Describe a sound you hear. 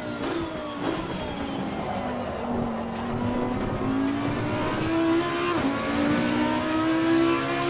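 A V10 racing car engine accelerates hard.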